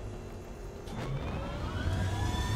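A mechanical cannon whirs and hums as it powers up.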